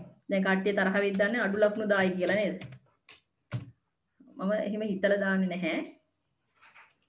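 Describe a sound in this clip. A woman speaks clearly over an online call.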